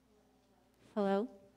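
A woman begins speaking into a microphone in a reverberant hall.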